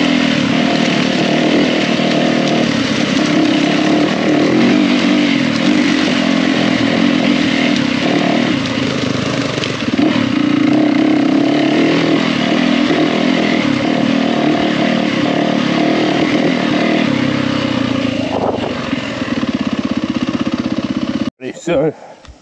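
A dirt bike engine revs and drones up close.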